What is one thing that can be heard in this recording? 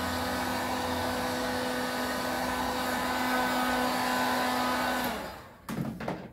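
A heat gun blows with a steady whirring hiss, then switches off.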